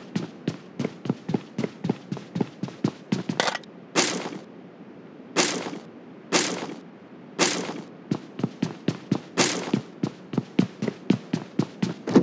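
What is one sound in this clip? Quick footsteps thud on a wooden floor.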